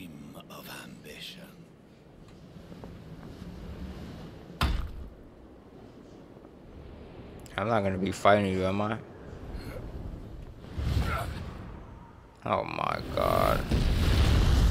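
An elderly man speaks in a deep, grave voice.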